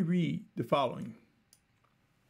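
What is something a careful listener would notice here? A middle-aged man speaks calmly into a microphone, close by.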